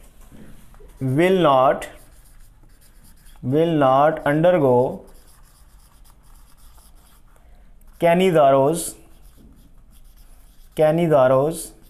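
A man speaks in short, drawn-out phrases with a rising and falling pitch.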